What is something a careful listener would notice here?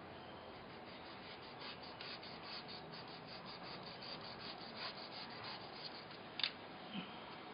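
Scissors snip repeatedly through soft foam.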